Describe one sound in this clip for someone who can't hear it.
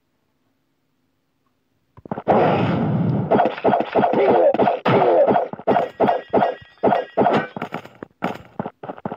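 Swords clash and ring in a quick fight.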